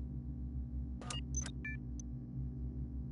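Short electronic beeps sound in quick succession.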